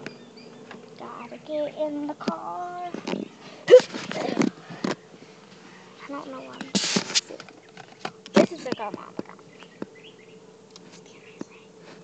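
A young girl talks close to a phone microphone with animation.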